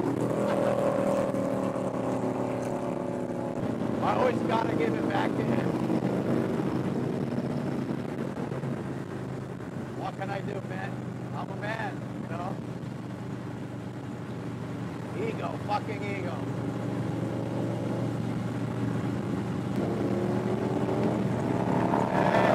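A motorcycle engine rumbles steadily at speed.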